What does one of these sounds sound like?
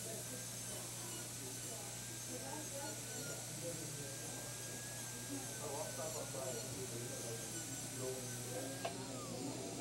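A dental drill whines steadily at a high pitch.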